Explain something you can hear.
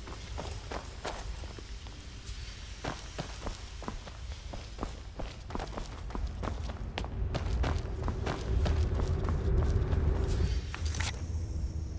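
Footsteps thud on stone in a large echoing hall.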